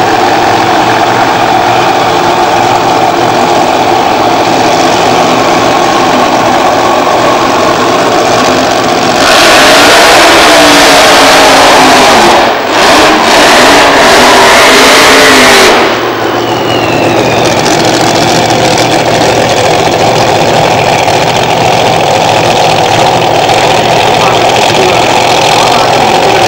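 A nitro funny car engine idles with a lumpy rumble.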